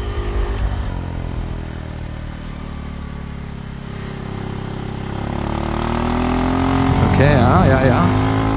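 A motorcycle engine hums close by, easing off and then revving up as it speeds away.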